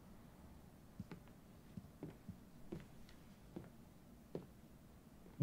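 Footsteps tap softly on a wooden floor.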